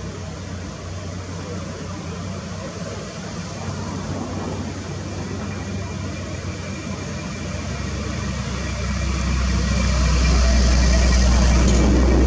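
Excavator tracks clank and squeak as the machine moves.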